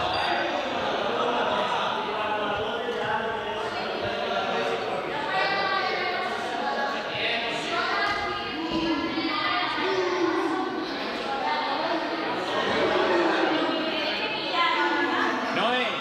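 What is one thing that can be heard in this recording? Young people chatter and call out in a large echoing hall.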